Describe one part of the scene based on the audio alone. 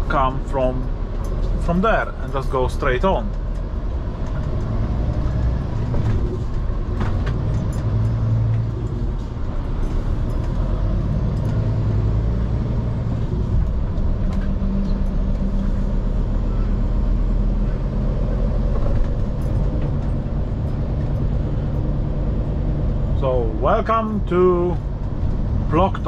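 Tyres hum on a paved road.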